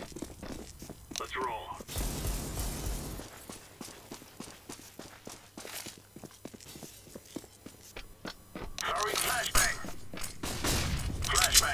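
Quick footsteps thud on hard ground.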